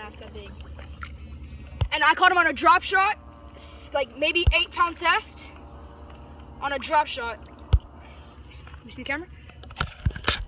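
Water splashes lightly in the shallows.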